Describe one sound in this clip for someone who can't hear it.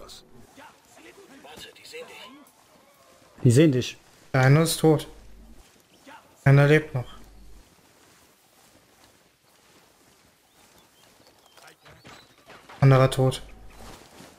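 Dry grass rustles as a soldier crawls through it.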